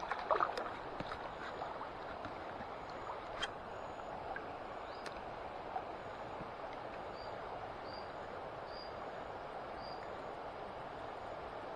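A shallow river flows and ripples steadily.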